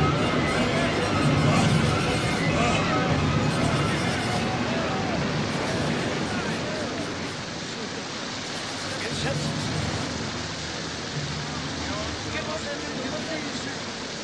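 Men shout over the storm.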